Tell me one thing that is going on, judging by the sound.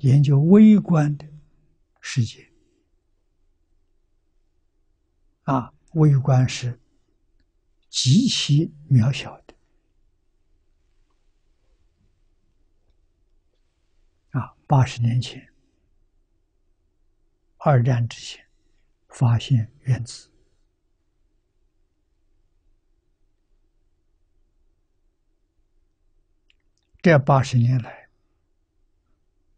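An elderly man speaks calmly in short phrases with pauses, close to a microphone.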